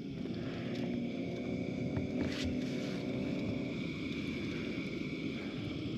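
A camping stove roars steadily.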